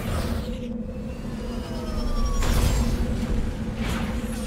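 Thrusters roar in bursts.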